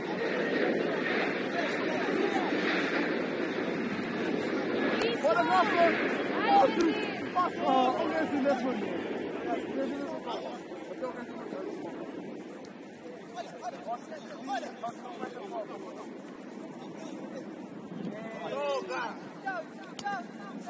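Young women shout and call to each other across an outdoor pitch.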